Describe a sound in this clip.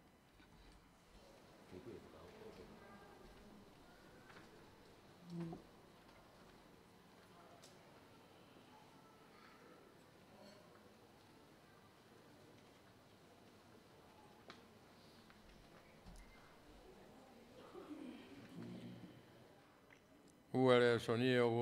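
A crowd of adults murmurs quietly in a room.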